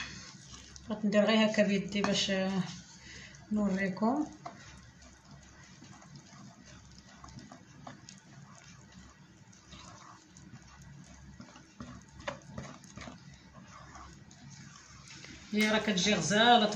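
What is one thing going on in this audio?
A whisk scrapes and taps against a bowl while stirring batter.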